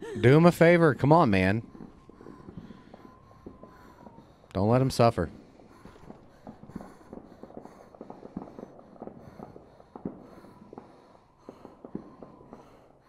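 A man talks quietly into a microphone close by.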